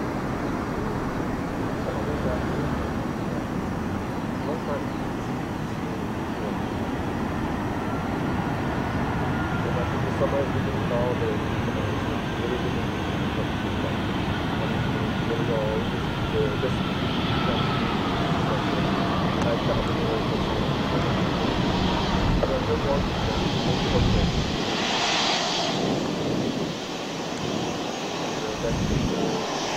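A jet airliner's engines roar loudly as it taxis past close by.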